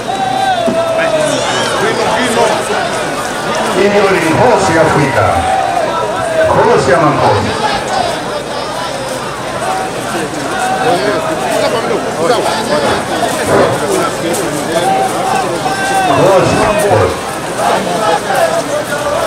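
A large crowd of men and women talks and calls out loudly outdoors.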